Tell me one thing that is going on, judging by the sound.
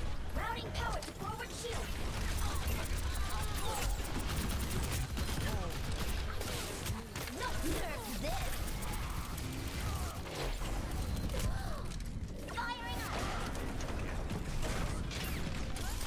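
Rapid gunfire and blasts crackle and boom throughout.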